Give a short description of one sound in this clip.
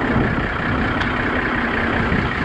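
A truck door handle clicks.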